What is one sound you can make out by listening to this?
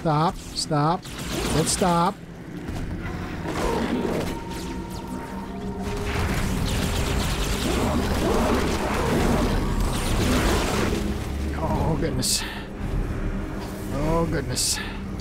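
A small alien creature squeals in short, high, rising cries.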